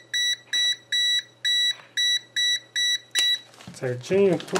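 A multimeter beeps in short, evenly repeated pulses.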